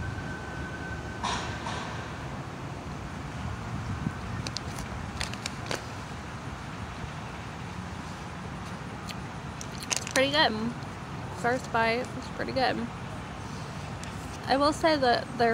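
A woman chews food close to the microphone.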